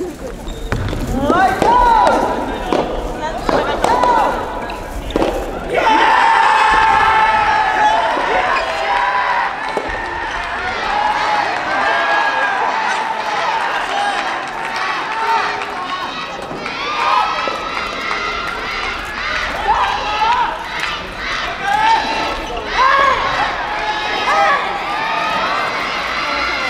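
A racket strikes a soft rubber tennis ball, echoing in a large hall.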